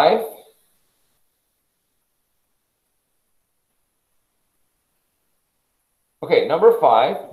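A man speaks calmly over a webcam microphone.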